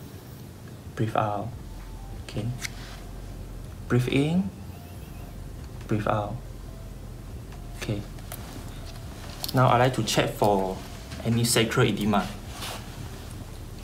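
A woman speaks calmly nearby in short phrases.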